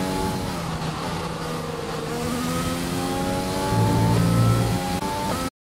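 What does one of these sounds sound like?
A racing car engine whines loudly, its pitch rising and dipping.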